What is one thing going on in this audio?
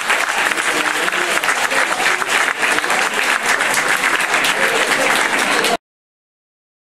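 An audience applauds loudly in a hall.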